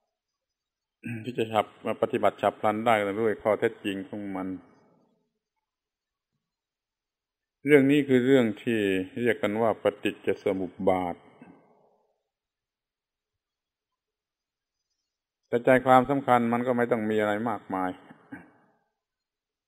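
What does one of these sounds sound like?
An elderly man speaks calmly, with long pauses.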